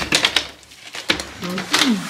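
A door handle clicks as a door is unlatched.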